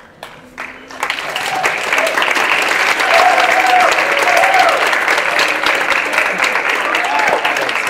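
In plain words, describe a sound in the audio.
An audience claps and cheers loudly.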